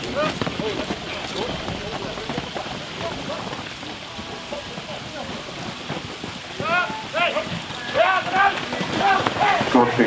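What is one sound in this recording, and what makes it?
Carriage wheels rattle and crunch over the ground.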